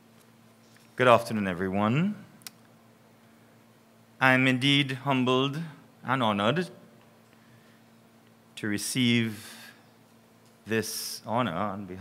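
A man speaks calmly into a microphone, heard through a loudspeaker in a hall.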